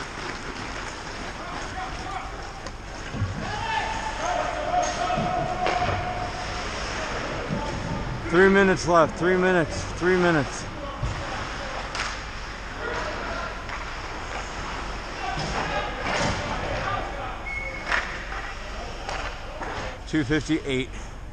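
Skates scrape and carve across ice in a large echoing rink.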